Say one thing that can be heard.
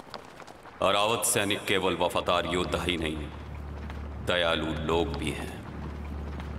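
A man speaks loudly and forcefully nearby.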